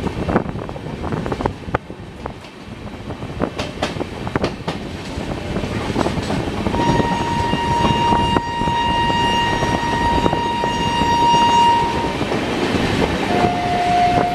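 Passenger coaches rumble past close by on an adjacent track.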